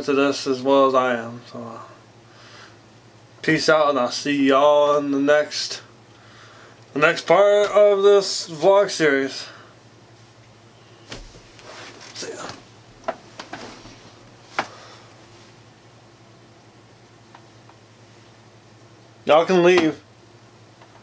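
A young man talks casually, close up.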